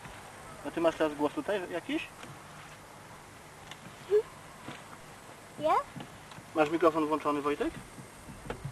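A young girl speaks in a high voice, close by.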